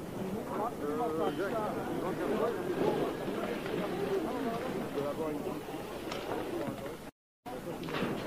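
A crowd of people shout and chatter outdoors.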